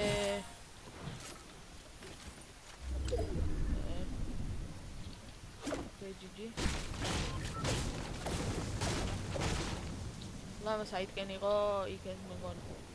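Footsteps run over grass and pavement.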